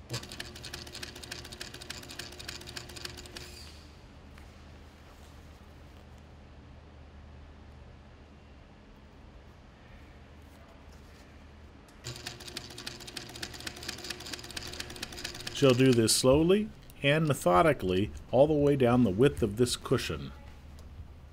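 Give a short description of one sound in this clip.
A sewing machine stitches rapidly in short bursts.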